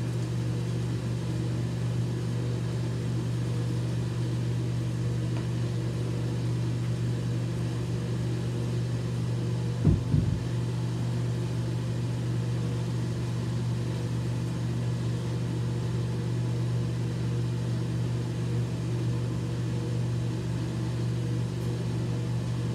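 A man brushes his teeth with quick scrubbing strokes.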